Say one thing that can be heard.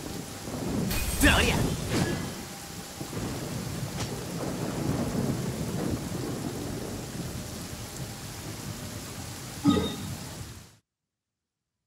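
A low magical hum and crackle rumbles on.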